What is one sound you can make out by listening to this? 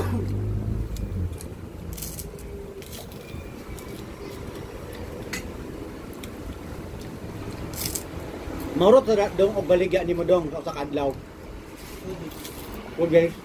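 A man chews and smacks his lips while eating.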